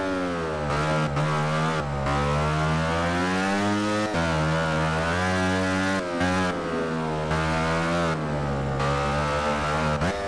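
A motorcycle engine winds up again out of the corner.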